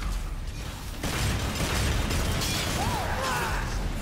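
Gunshots crack rapidly in quick bursts.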